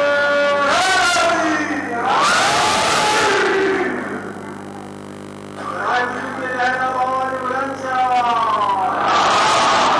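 A harmonium plays steady, droning chords.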